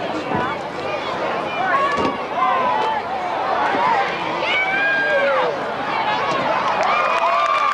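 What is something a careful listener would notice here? A large crowd cheers and shouts excitedly outdoors.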